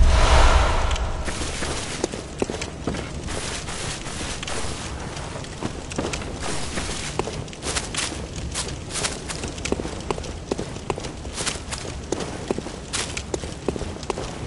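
Footsteps thud on stone at a quick running pace.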